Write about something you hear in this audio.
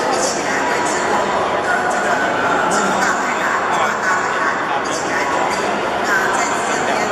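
A middle-aged woman speaks steadily into a microphone through loudspeakers in an echoing room.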